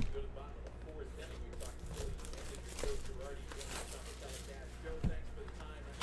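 Plastic wrap crinkles as it is torn off a box.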